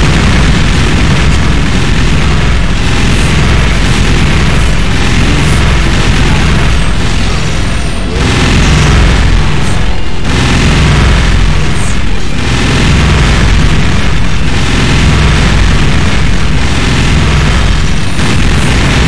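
Loud explosions and blasts boom and crackle.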